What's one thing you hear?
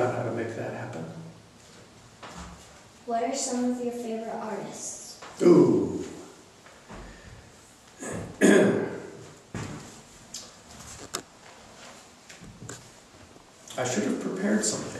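A girl speaks softly nearby.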